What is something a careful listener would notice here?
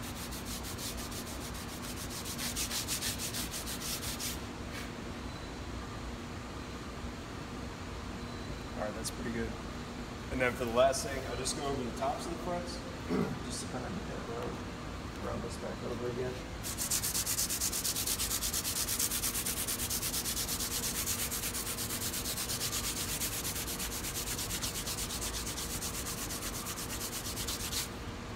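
A file rasps quickly back and forth against metal.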